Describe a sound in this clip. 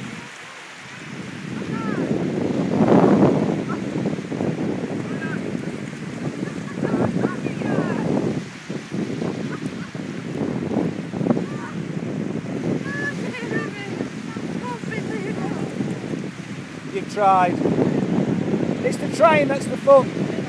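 Wind blusters loudly against the microphone outdoors.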